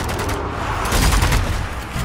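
An explosion booms.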